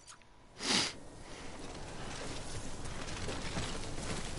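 Footsteps tread through grass.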